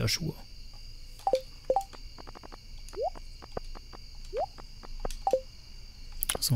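Soft game menu clicks and chimes sound.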